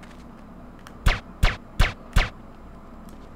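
Four loud gunshots ring out in quick succession.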